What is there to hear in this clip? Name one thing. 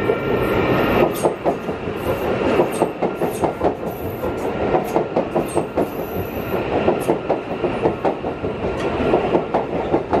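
A train rushes past close by.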